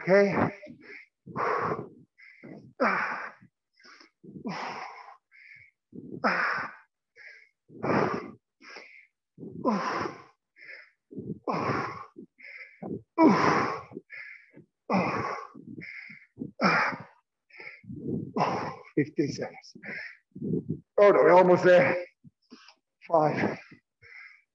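A man talks steadily, with short pauses.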